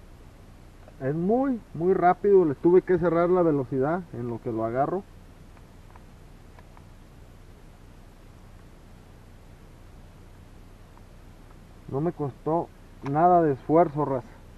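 A man talks calmly and close up, in short bursts.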